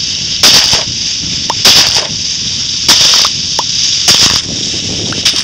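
Blocks of dirt crumble and break in short, crunchy bursts.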